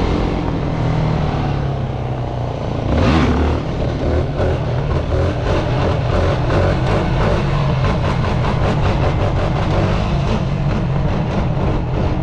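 A quad bike engine hums and revs up close.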